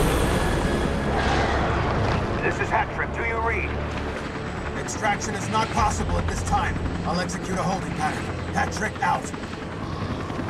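A man speaks calmly over a radio.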